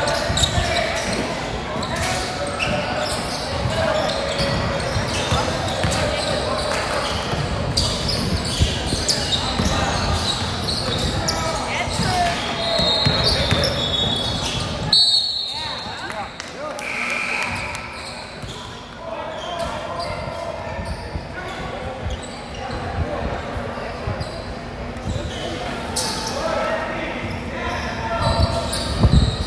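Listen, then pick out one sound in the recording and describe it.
Young men shout to one another across a large echoing hall.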